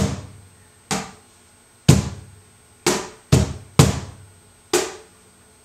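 A wooden box drum is struck with the hands in a slow beat, each hit booming and snapping.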